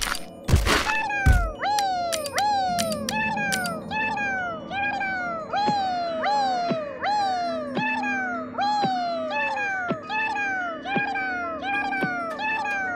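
Little game characters chirp in quick, swooping squeaks, over and over.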